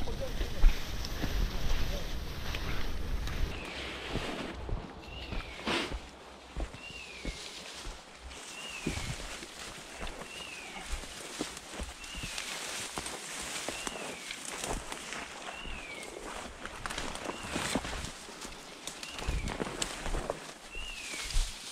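Branches and dry brush rustle and snap as someone pushes through thick bushes on foot.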